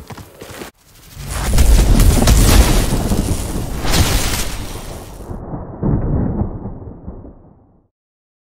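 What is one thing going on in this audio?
Electric energy crackles and whooshes over a deep rumble, then fades out.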